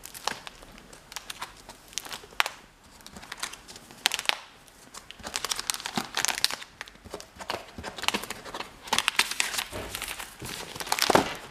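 Plastic album sleeves rustle and crinkle as pages are turned.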